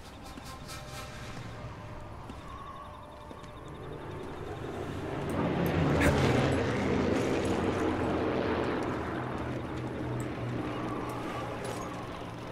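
Footsteps shuffle softly through grass and over stone.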